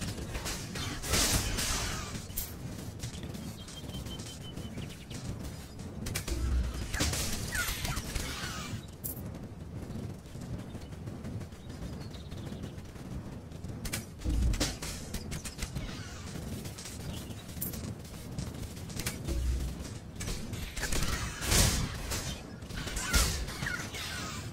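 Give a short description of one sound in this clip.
Game combat sound effects clash and thud.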